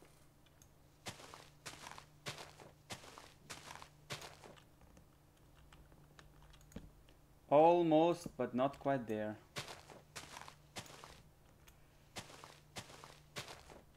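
Blocks crunch as a game character breaks wood.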